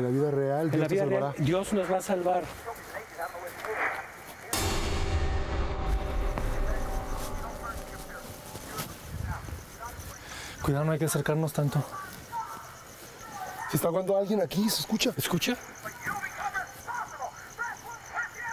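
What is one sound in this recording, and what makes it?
Men talk tensely and with excitement.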